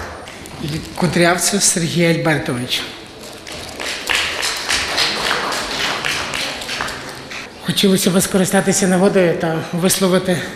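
A man speaks into a microphone, heard over loudspeakers in a large echoing hall.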